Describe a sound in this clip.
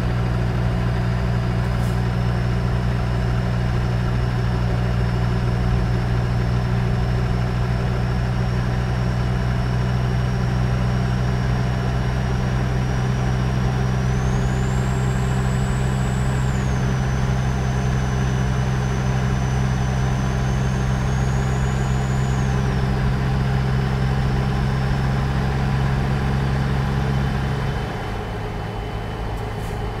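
A truck engine drones steadily, then drops lower near the end.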